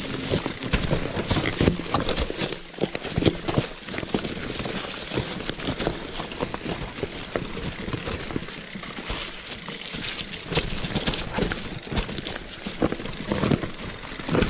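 A bicycle's frame and chain rattle over bumps.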